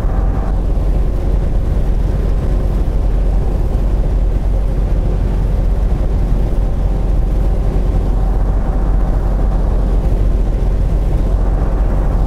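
A truck engine drones steadily as it drives along a highway.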